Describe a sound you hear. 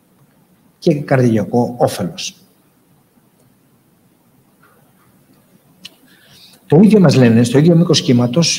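A woman speaks calmly through a microphone, with pauses.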